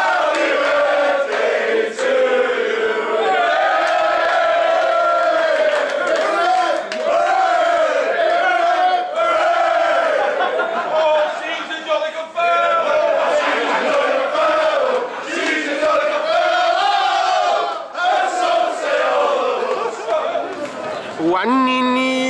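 A crowd of men and women sings loudly together.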